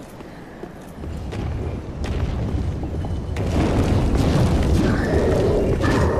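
A large creature roars.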